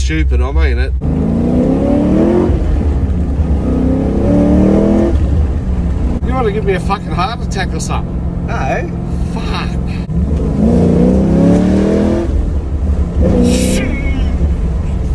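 A car engine roars and rises in pitch as it accelerates hard.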